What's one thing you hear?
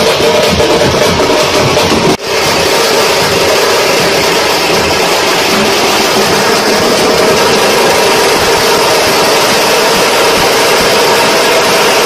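Large drums are beaten loudly and fast by a group of drummers.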